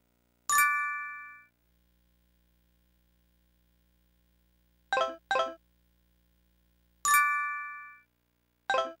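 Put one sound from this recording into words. Bright chiming menu sounds ring out as the game's menus open.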